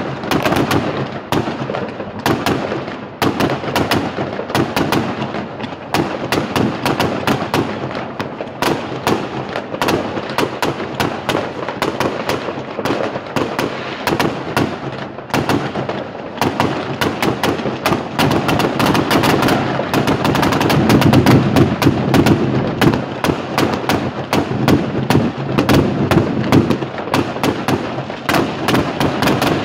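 Fireworks bang and crackle rapidly nearby, echoing off buildings.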